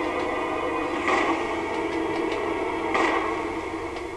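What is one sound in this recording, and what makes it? Gunshots ring out sharply.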